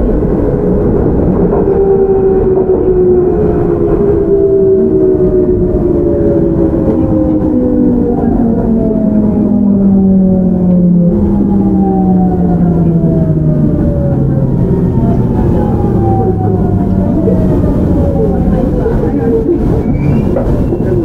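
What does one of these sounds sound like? An electric train's motors whine loudly, falling steadily in pitch as the train slows.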